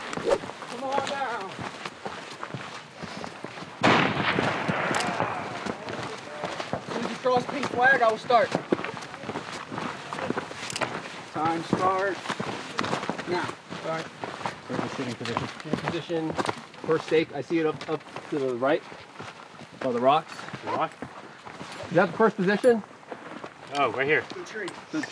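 Boots crunch on dry, rocky ground.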